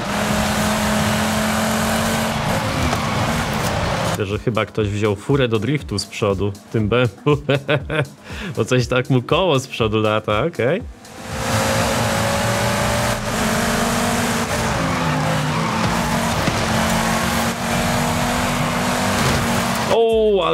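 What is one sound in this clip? A racing car engine roars at high revs, rising and falling with gear changes.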